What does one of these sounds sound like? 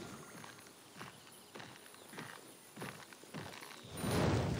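A game sound effect repeats in short, falling chirps at an even pace.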